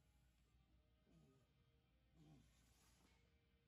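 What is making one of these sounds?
A man breathes out hard with effort.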